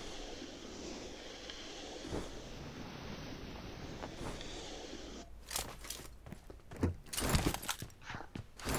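Footsteps run quickly over the ground and then onto a hard floor.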